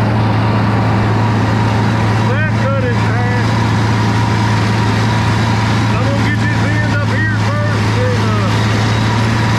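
A tractor engine drones steadily up close.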